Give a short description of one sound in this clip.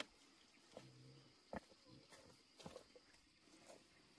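A woven basket is set down on the ground.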